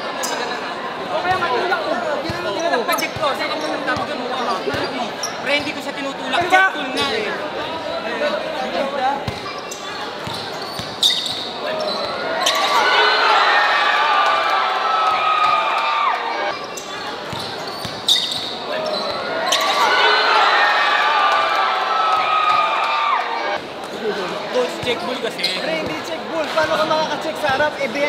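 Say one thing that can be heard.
A large crowd of young people cheers and shouts loudly.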